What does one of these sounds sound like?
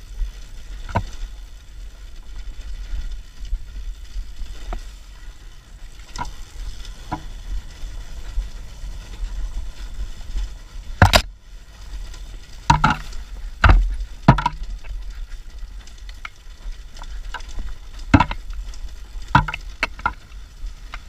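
Stones and bumps knock sharply against the bike's frame and wheels.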